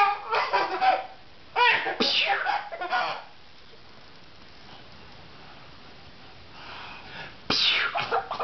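A man laughs and talks playfully up close.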